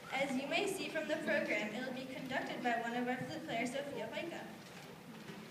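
A woman speaks calmly in a large echoing hall.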